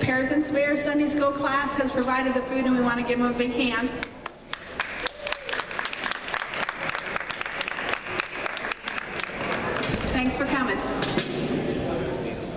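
A middle-aged woman sings into a microphone over a loudspeaker.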